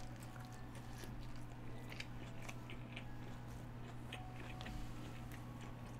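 A young man chews food noisily close by.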